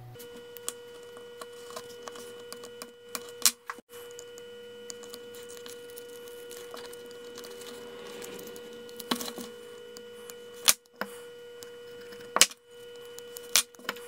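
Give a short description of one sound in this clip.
A small blade scratches and ticks lightly against tape on a hard surface.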